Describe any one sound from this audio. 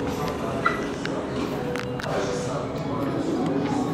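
Elevator doors slide open with a low rumble.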